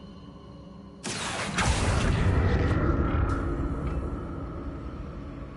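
A magic spell bursts out with a loud rushing whoosh and a low rumble.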